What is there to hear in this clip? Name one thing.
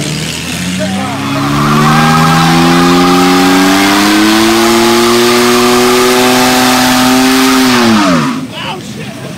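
A car engine revs hard and holds a high roar, then drops away.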